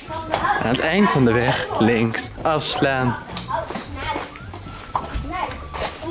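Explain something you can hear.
Horse hooves clop slowly on paving stones.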